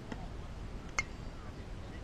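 A bat cracks against a ball in the distance.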